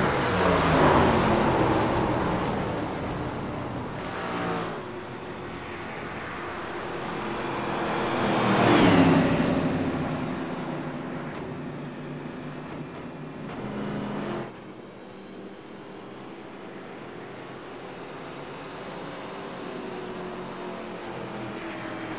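Racing car engines roar loudly as cars speed past, pitch rising and falling.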